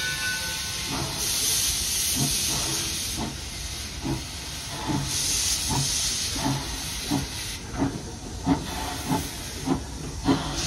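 A steam locomotive chuffs in a steady, quickening rhythm as it pulls away.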